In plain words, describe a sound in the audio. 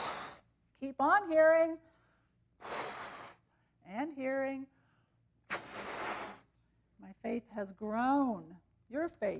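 A balloon squeals as air is let out of its neck.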